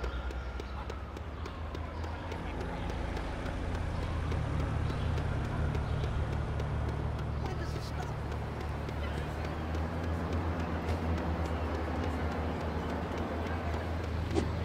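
Quick light footsteps patter on pavement.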